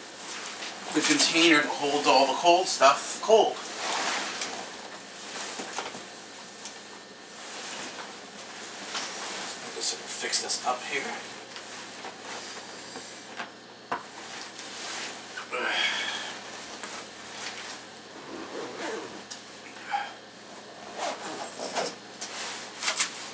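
A bag rustles and clatters as it is rummaged through.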